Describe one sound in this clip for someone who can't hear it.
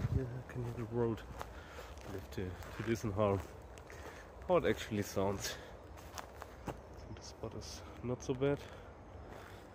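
A man talks calmly close up.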